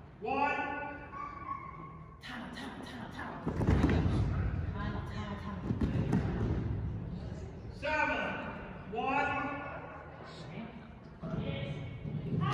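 A woman calls out to a dog in a high, sing-song voice, echoing in a large hall.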